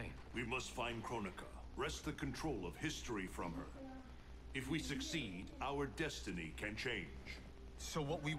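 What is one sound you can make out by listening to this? An older man speaks calmly in a deep voice.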